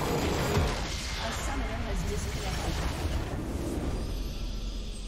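A loud explosion rumbles and crashes, then slowly fades.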